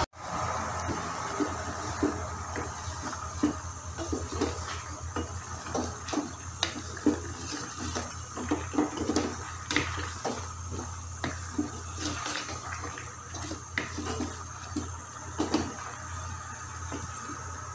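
A wooden spoon scrapes and knocks against a pan.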